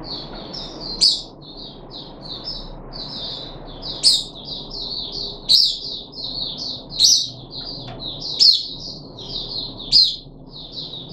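A bird's wings flutter and its feet knock against a cage as it hops.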